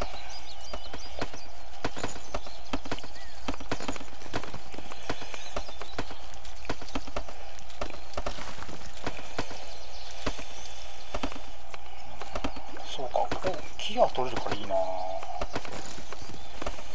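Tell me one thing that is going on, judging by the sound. Soft clicks tick again and again as menu items are picked.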